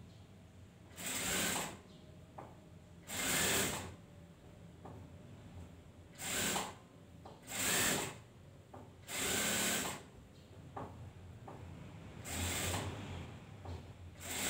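A sewing machine whirs in short bursts.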